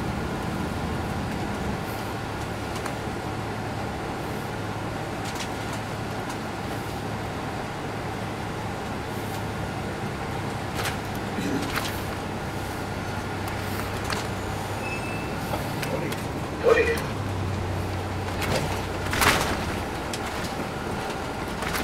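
A bus rattles and knocks as it rolls over the road.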